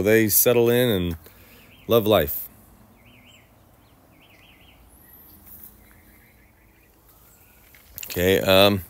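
A man speaks calmly and close to the microphone, in short bursts.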